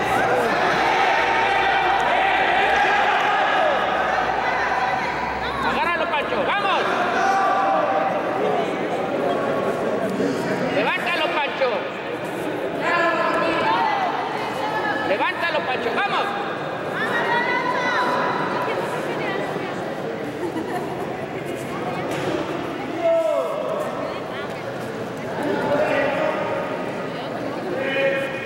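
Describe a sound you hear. A crowd of spectators shouts and cheers in an echoing hall.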